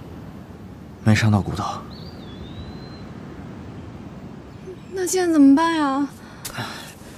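A young woman speaks anxiously nearby.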